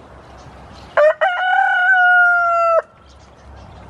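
A rooster crows loudly and close by.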